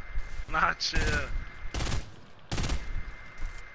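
Gunshots bang sharply several times.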